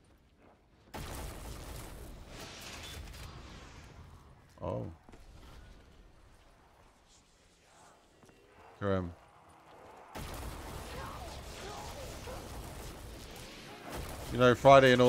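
A magic weapon fires with crackling, buzzing zaps.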